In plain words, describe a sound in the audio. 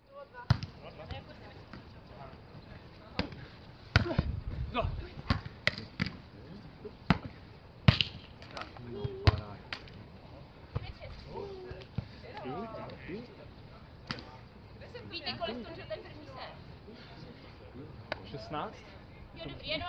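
Hands strike a beach volleyball outdoors.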